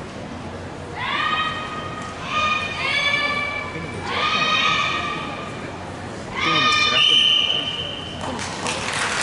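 Young women shout sharp, drawn-out cries in a large echoing hall.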